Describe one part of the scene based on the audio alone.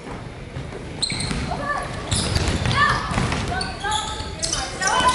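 Young women players call out to each other.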